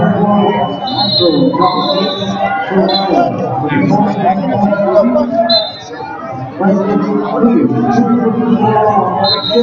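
A crowd of spectators shouts and calls out in a large echoing hall.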